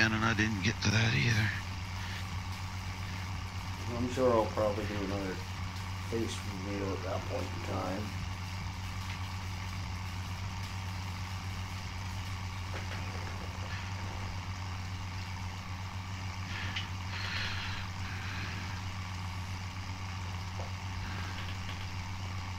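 A tractor engine drones steadily.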